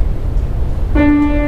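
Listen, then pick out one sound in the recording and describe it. A woman sings close to a microphone.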